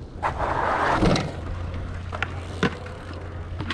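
A bike lands with a hard thud on concrete.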